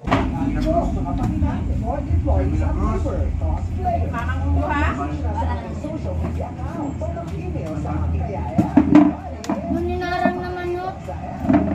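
Plastic chairs scrape and clatter as they are moved.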